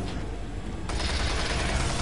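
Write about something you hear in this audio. A monster snarls close by.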